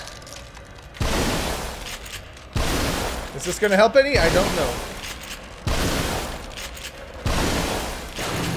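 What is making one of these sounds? A shotgun fires loud blasts several times.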